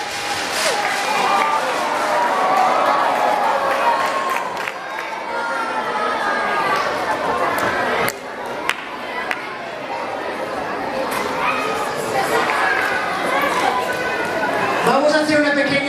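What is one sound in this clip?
An audience cheers and claps.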